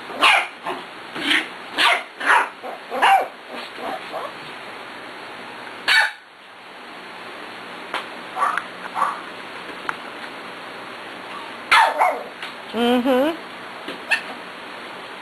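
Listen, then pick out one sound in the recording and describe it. Puppies yip and bark sharply in short bursts.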